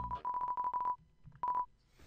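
Rapid electronic blips sound as video game dialogue text types out.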